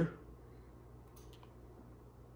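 A remote control button clicks once.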